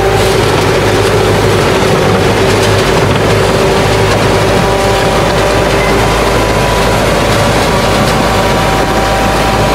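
Steel tracks clank and squeal as a crawler shovel moves.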